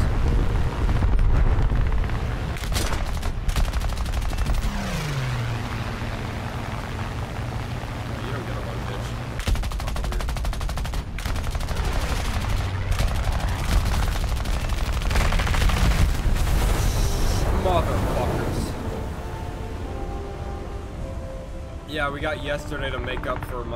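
A plane's engine drones steadily.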